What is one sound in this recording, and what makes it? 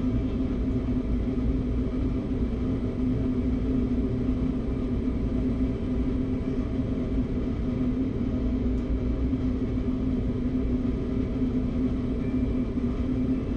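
A train engine hums steadily while idling.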